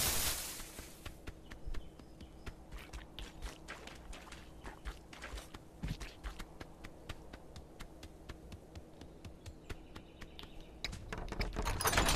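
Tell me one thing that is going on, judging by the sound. A goose's feet patter quickly on soft ground.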